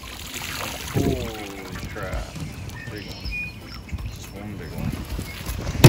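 Water pours and splashes from a lifted net onto the surface of a lake.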